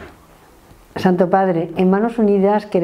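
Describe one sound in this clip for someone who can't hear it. A middle-aged woman speaks calmly and close to the microphone.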